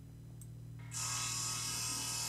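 A saw rasps harshly against metal.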